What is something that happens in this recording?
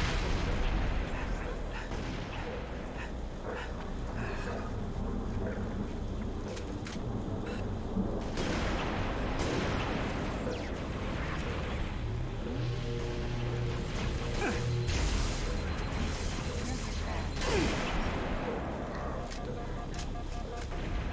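Gunfire and energy weapons crackle and boom in a video game battle.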